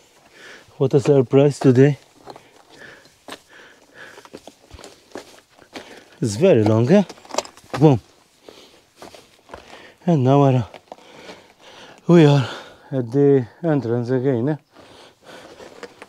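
Footsteps crunch on loose stones.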